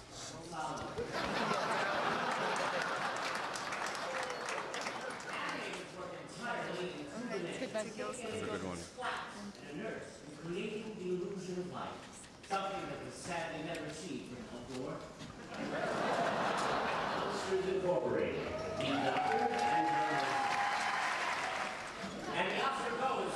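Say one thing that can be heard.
A large crowd cheers and applauds loudly in a big hall.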